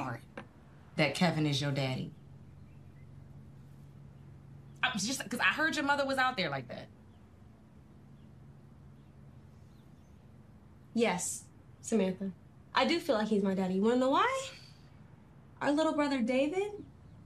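A second young woman answers calmly, close by.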